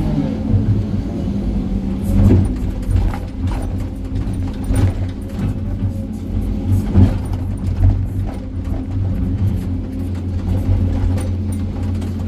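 A diesel engine rumbles steadily close by.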